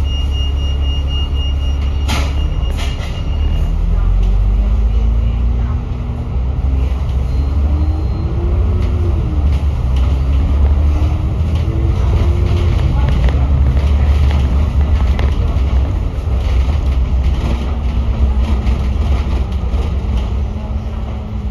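A vehicle's engine drones steadily, its pitch rising and falling as it drives along.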